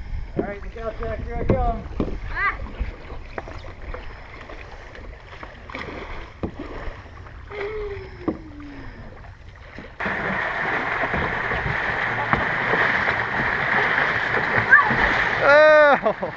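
Paddles splash and slap in the water.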